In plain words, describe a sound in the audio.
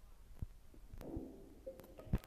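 A game alarm blares.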